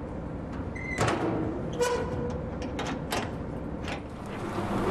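A key rattles and clicks in a door lock.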